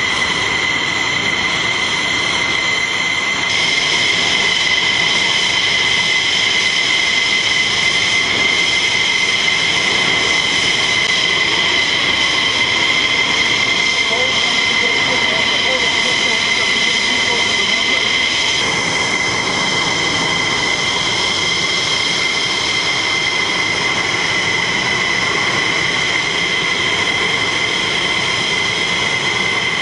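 Jet engines whine loudly and steadily nearby.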